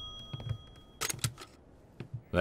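A telephone handset clatters as it is picked up.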